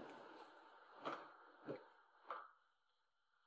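High heels click on a hard floor.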